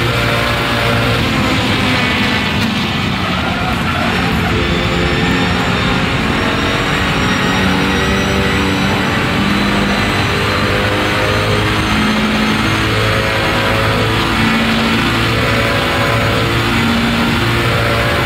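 A racing car engine roars loudly and shifts through the gears.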